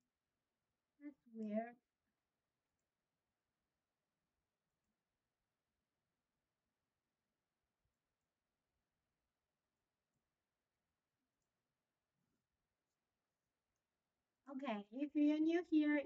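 A young woman speaks calmly into a microphone, close by.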